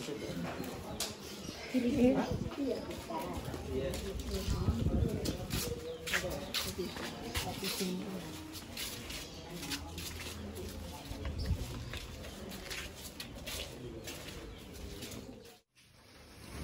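Footsteps walk along a hard path outdoors.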